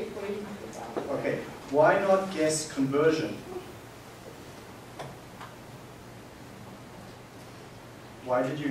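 A man lectures in a large room, heard from a distance.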